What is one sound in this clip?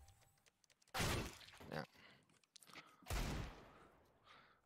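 A pistol fires two loud shots.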